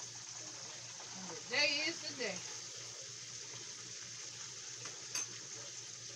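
A spoon scrapes and clinks against a pot.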